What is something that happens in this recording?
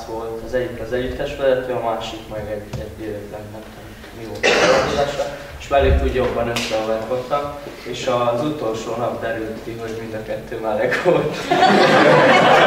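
A man speaks nearby at a lively pace.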